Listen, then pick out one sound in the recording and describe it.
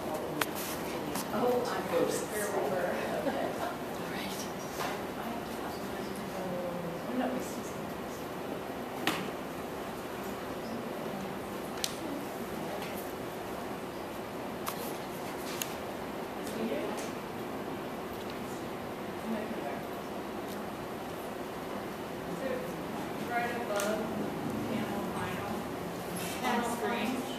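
A woman speaks calmly into a microphone, heard through a loudspeaker in a room.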